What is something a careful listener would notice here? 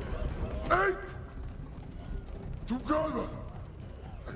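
An ape shouts loudly nearby.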